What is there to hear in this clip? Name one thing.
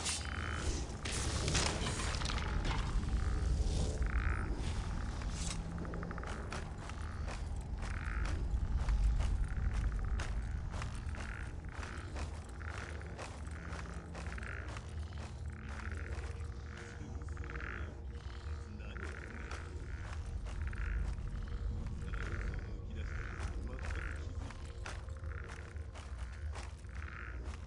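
Footsteps crunch steadily on a dirt floor.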